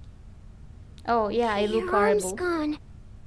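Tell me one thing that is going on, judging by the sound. A young girl speaks in a worried voice, close by.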